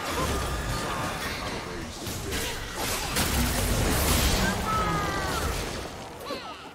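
Game spell effects whoosh and crackle in quick bursts.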